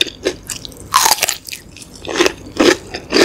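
A young woman bites into a crisp cucumber with a loud crunch.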